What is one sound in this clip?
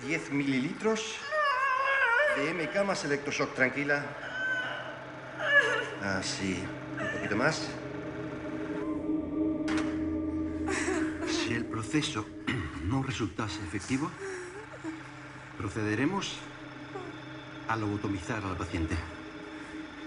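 A woman cries and sobs in distress.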